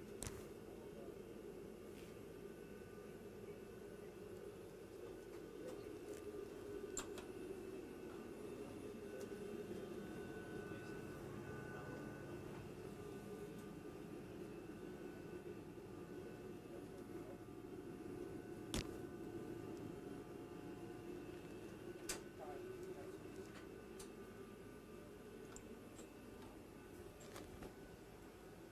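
Ventilation fans hum steadily all around.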